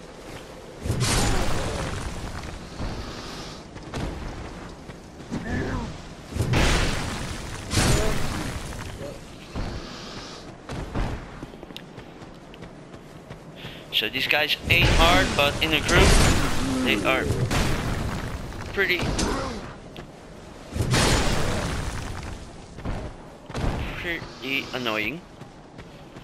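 Sword blows clash and thud in a fight.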